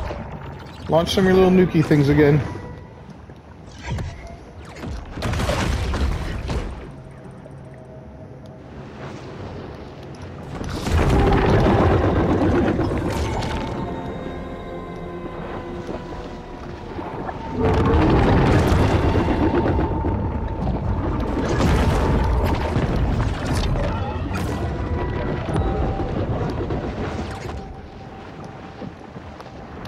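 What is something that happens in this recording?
Water rushes and churns as a large sea creature swims.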